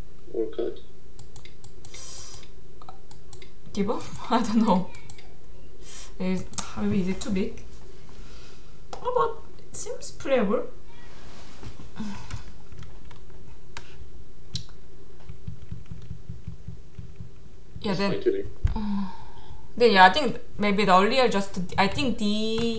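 A young woman talks calmly into a close microphone, in short bursts with pauses.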